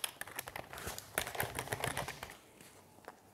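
A paper face mask rustles as a young man puts it on.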